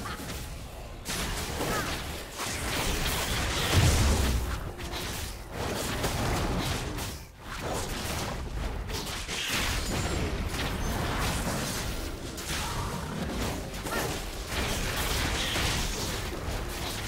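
Game spell effects whoosh and burst during a fight.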